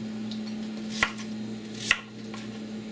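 A knife taps on a cutting board.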